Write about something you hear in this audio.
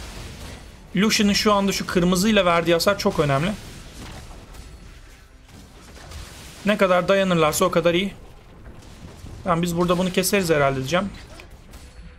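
A young man speaks into a microphone with animation, in short bursts.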